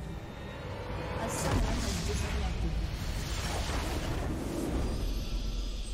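A structure explodes with a deep, rumbling boom.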